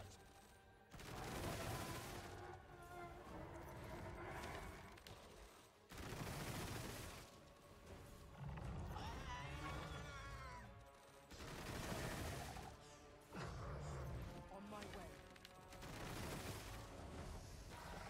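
Magic spells whoosh and crackle in loud bursts.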